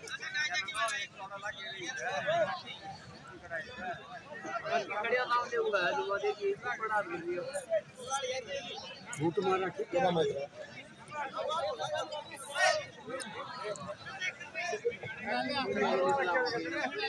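A crowd of men and women shouts and cheers outdoors nearby.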